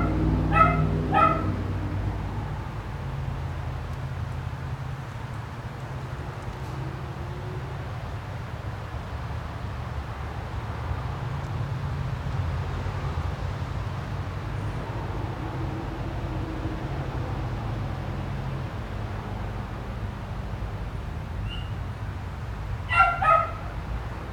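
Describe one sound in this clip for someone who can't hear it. A caged bird chirps in short, sharp bursts.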